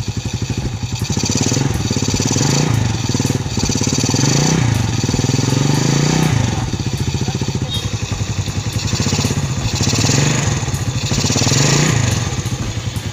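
A motorcycle engine revs up and settles back several times.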